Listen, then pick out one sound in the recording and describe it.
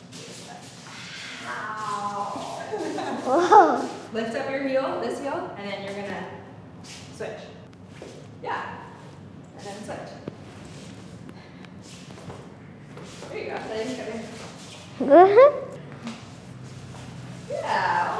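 Shoes slide and tap on a hard floor.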